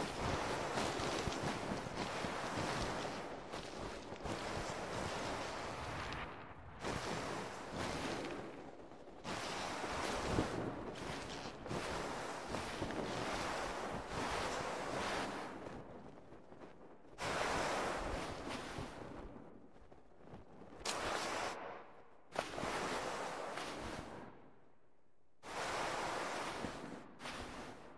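Strong wind howls and roars in gusts through a snowstorm.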